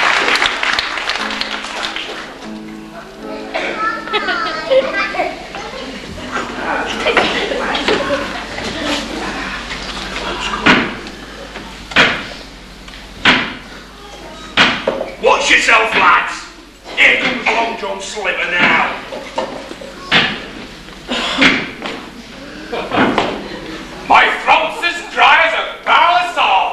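Actors speak loudly on a stage in a large echoing hall.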